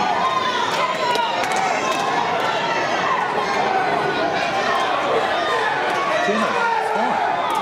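Nearby spectators talk and cheer.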